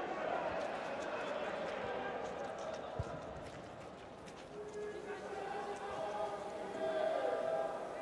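A crowd chants and sings in a large open stadium.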